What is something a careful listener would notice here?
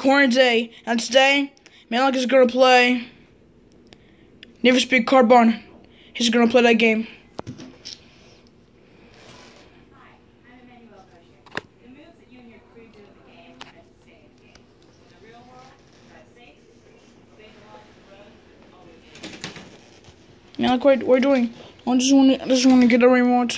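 A man talks close by in a high, squeaky put-on voice.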